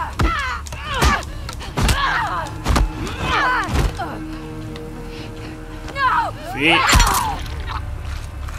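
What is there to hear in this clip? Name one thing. A man shouts and screams in pain during a struggle.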